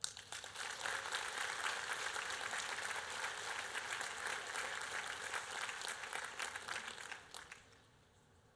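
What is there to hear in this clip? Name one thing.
An audience applauds in a large hall, then the clapping stops.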